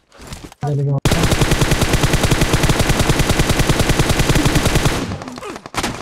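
An automatic rifle fires a long, rapid burst.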